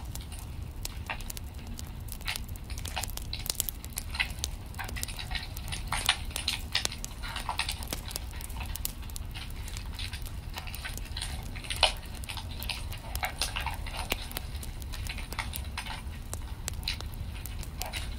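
Flames roar softly with a low rumble.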